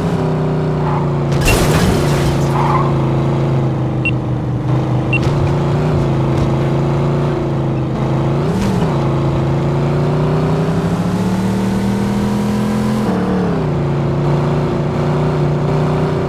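A car engine hums steadily, rising and falling in pitch as the car speeds up and shifts gears.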